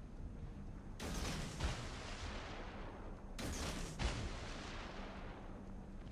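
Heavy ship guns fire in loud booming salvos that roll away.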